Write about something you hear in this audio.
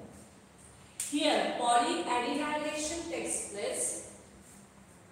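A young woman speaks clearly into a nearby microphone, as if teaching.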